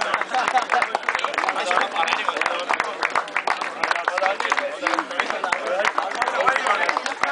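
A crowd of people applauds outdoors.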